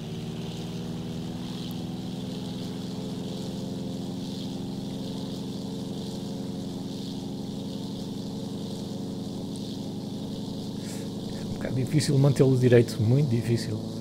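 A small propeller engine drones steadily.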